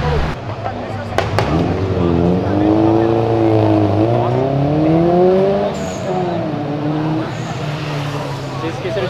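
A car engine revs up and down repeatedly.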